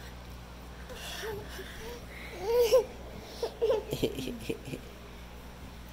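A baby girl babbles and squeals nearby.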